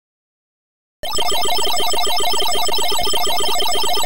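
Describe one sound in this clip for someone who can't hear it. Fast electronic game bleeps and chirps play in a quick repeating pattern.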